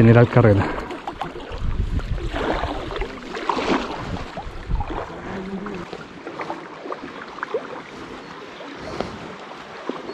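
A paddle splashes and dips into water.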